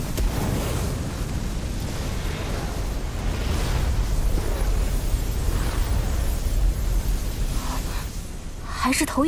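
Flames roar with a deep, steady rumble.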